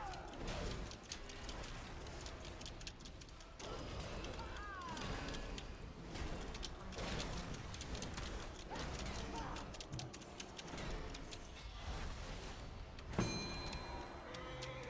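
Game spell effects whoosh, crackle and burst in quick succession.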